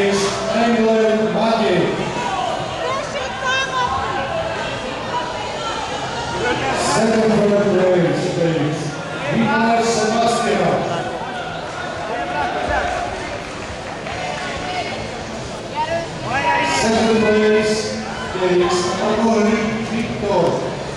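A crowd of spectators shouts and cheers loudly in a large echoing hall.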